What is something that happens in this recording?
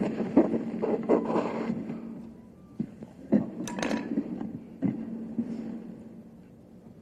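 A man speaks quietly close to a microphone.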